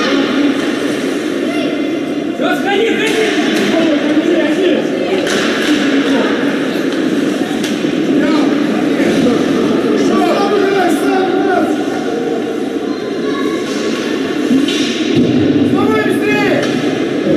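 Spectators chatter and call out nearby in a large echoing rink.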